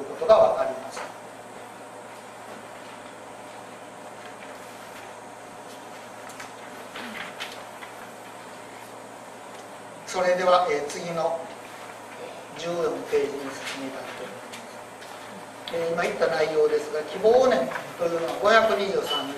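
An elderly man reads aloud calmly into a microphone.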